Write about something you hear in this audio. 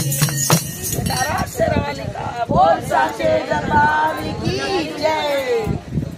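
A group of women sing together loudly outdoors.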